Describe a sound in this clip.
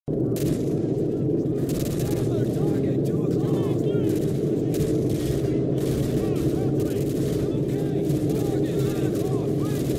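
Fires roar with a steady low rumble.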